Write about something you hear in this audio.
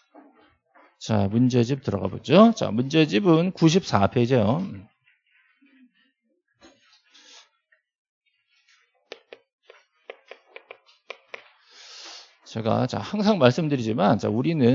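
A man lectures with animation into a handheld microphone.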